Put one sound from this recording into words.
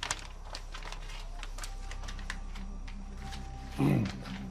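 Paper crinkles softly in hands.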